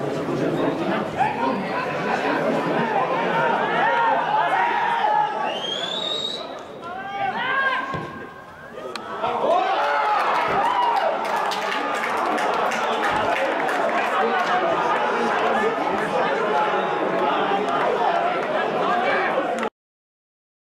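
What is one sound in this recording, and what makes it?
A crowd cheers and shouts across a sports ground outdoors.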